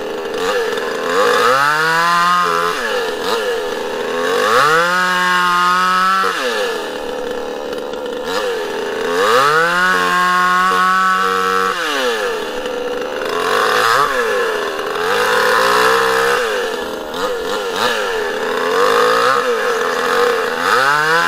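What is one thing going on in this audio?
A two-stroke chainsaw revs to full throttle and cuts through a log.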